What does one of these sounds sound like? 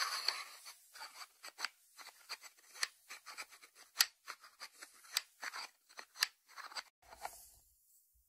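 Fingertips tap on a ceramic lid.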